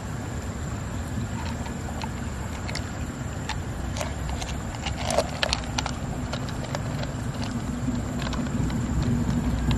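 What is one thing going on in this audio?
Hands squelch through the soft flesh of a mussel.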